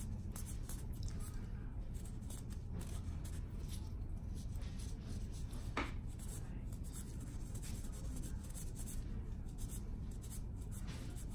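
Gloved fingers scrape and pick at dry, flaky skin.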